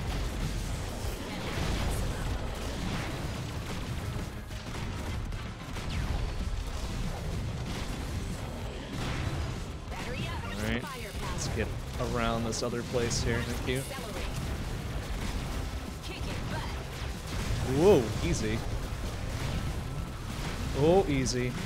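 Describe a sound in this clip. Video game gunfire and explosions crackle and boom steadily.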